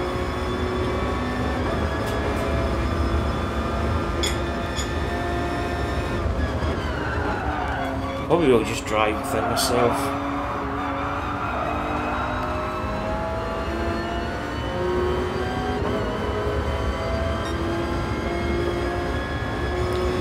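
A racing car engine roars steadily, rising and falling in pitch as the car speeds up and brakes.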